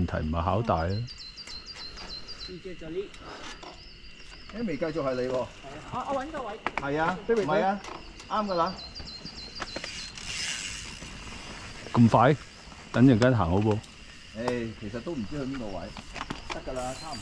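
Men talk casually nearby, outdoors.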